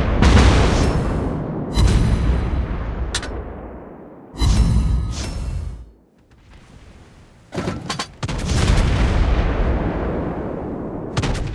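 Heavy guns fire in loud booming salvos that roll away.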